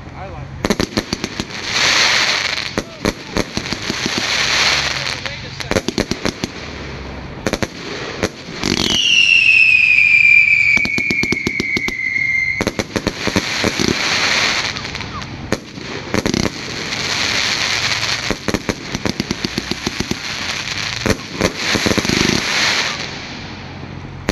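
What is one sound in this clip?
A firework fountain hisses and roars.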